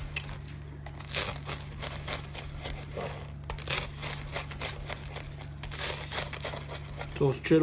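A knife crunches through crisp toasted bread.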